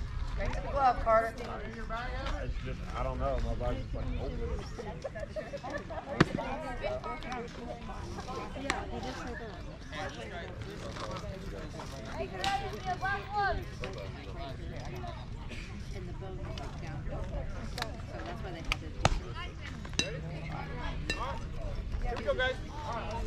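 Young players and adults shout and chatter across an open field.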